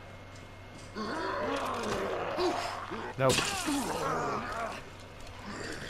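A zombie groans and snarls up close.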